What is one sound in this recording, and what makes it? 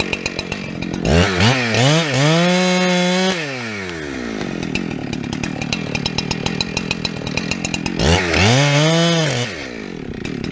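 A chainsaw revs up loudly and winds down.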